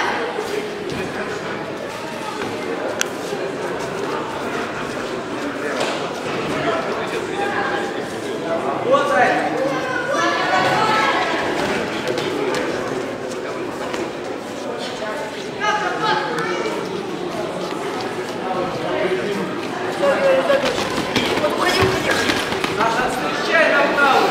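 Spectators shout and call out loudly in an echoing hall.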